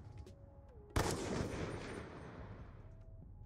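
A rifle fires a single loud shot that echoes and slowly fades.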